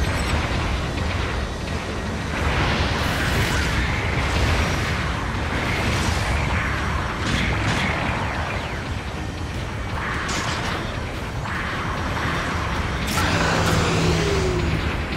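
Jet thrusters roar steadily.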